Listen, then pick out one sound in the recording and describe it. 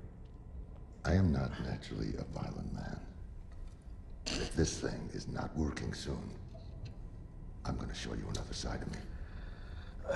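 A man speaks close by in a low, tense voice.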